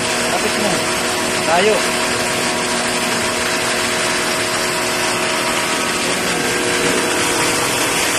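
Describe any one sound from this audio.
A pressure washer sprays a hard, hissing jet of water.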